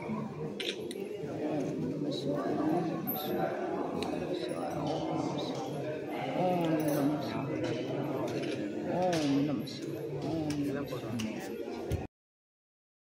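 A crowd of men and women talk and murmur nearby outdoors.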